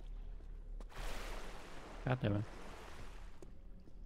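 Water splashes as a swimmer climbs out.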